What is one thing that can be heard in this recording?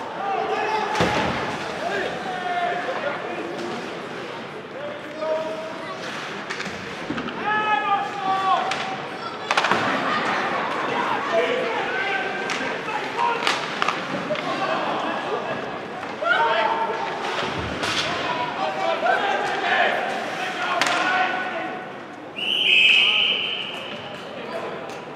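Spectators chatter and call out in a large echoing arena.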